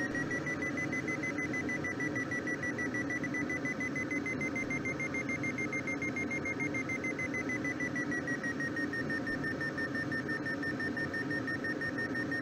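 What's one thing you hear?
A glider's climb indicator sounds a steady high tone that rises a little and then falls slightly.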